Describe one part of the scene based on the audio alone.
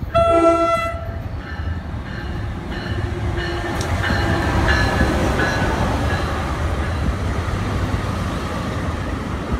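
A passenger train rumbles past close by, wheels clattering on the rails.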